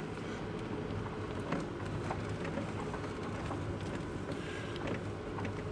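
A car engine hums steadily as the car drives along.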